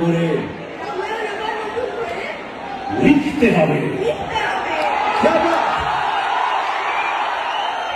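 A crowd cheers and chatters in a large echoing hall.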